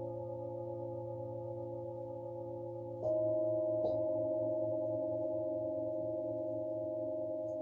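Metal singing bowls ring with a steady, layered hum.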